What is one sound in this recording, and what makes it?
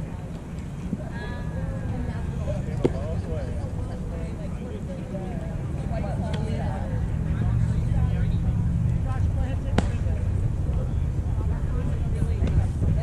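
Players call out to each other from across an open field.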